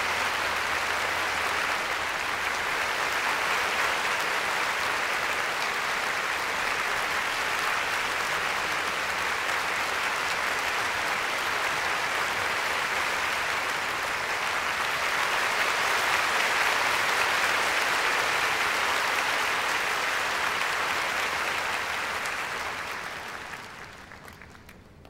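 An audience applauds loudly and steadily in a large hall, then fades away.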